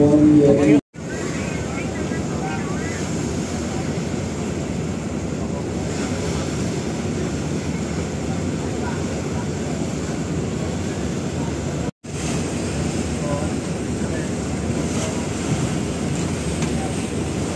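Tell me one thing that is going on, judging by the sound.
A tugboat engine rumbles steadily.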